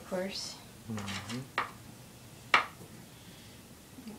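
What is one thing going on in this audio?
A spoon scrapes and taps against a glass jar.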